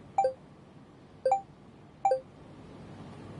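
Short bright message chimes ring out one after another.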